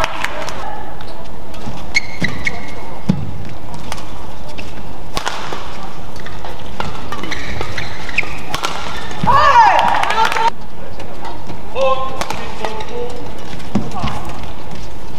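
Rackets smack a shuttlecock back and forth in quick, sharp hits.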